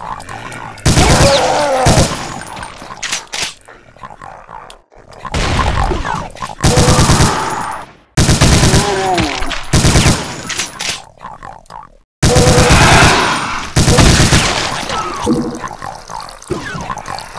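A monster snarls and growls.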